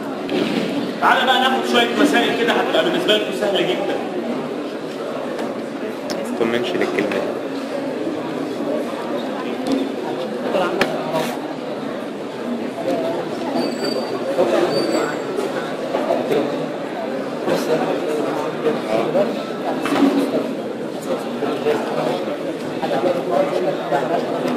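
A middle-aged man lectures aloud in an echoing room.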